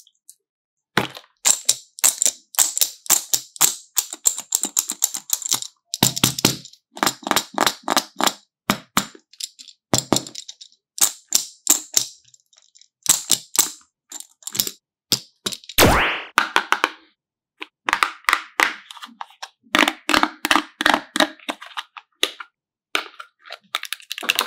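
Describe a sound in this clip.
Plastic toy pieces click and rattle in the hands.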